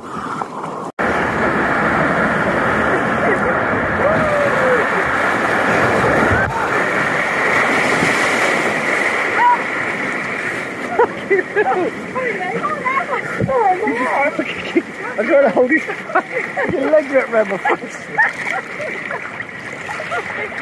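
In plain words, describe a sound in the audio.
Water churns and bubbles in a pool.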